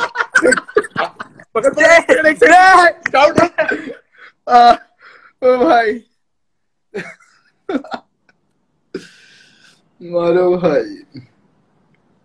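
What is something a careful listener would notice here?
A young man talks and laughs with animation, heard through a phone microphone.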